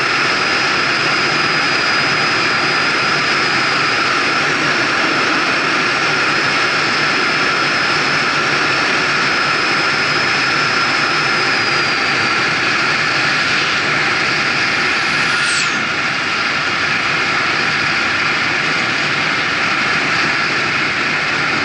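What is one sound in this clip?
Wind roars steadily past a vehicle driving fast on a road.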